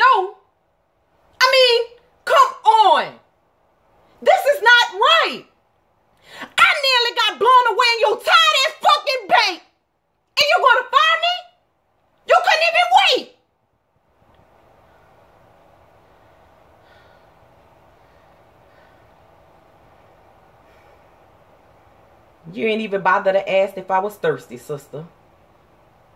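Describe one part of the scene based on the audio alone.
A woman speaks loudly and with animation close by, in short bursts.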